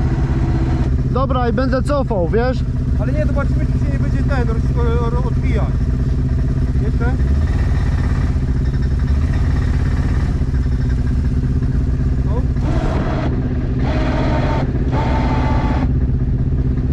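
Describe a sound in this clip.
A man speaks loudly over the engine from a short distance.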